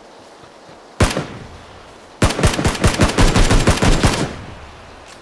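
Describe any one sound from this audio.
A rifle fires a single shot, then a rapid burst of shots.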